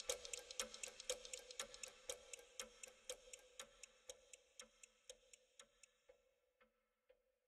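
A clock ticks steadily and slowly fades away.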